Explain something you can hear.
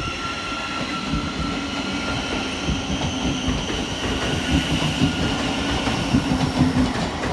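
Train wheels clatter over rail joints, growing louder.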